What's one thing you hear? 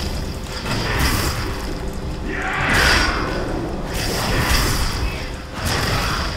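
Weapons strike in a fast fight with sharp hits.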